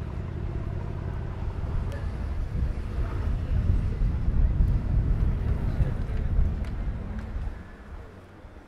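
A car engine rumbles close by.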